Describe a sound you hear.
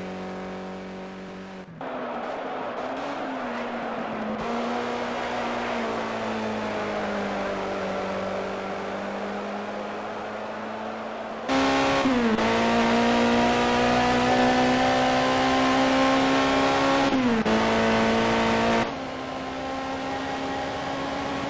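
A racing car engine roars steadily, shifting pitch as it speeds and slows.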